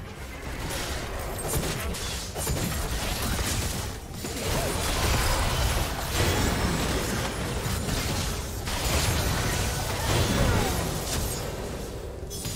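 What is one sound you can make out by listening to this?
Fast game combat sounds whoosh, crackle and burst in quick succession.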